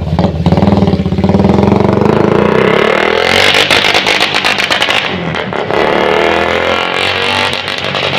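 A motorcycle rides off and fades into the distance.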